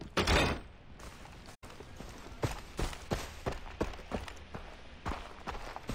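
Footsteps crunch softly over grass and dirt.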